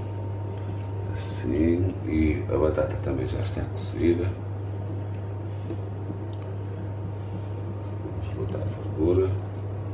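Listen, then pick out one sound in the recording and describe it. A wooden spoon stirs a thick sauce in a pan.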